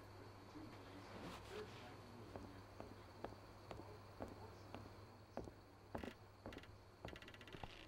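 Footsteps hurry across a wooden floor.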